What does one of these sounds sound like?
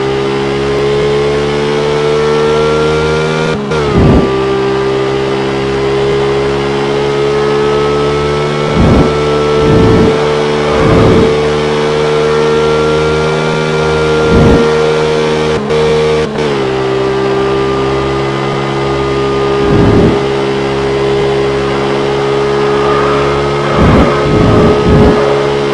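A racing car engine roars at high revs, its pitch climbing slowly and dropping sharply at each gear change.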